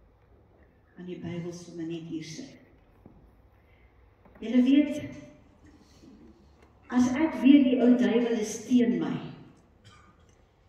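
A woman sings slow, held phrases through a microphone in an echoing hall.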